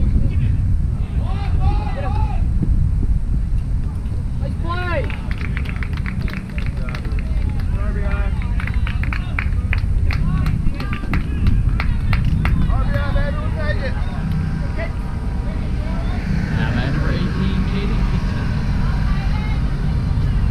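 Young men shout across an open field in the distance.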